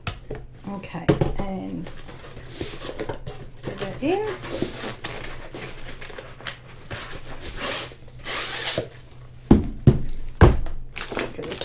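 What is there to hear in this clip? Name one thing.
A cardboard tube knocks on a table.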